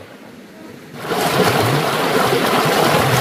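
Water gushes and splashes loudly up close.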